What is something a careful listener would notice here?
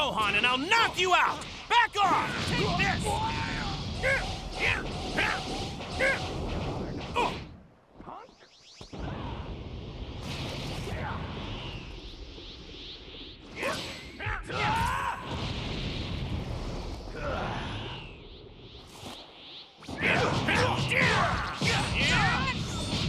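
Explosions rumble loudly.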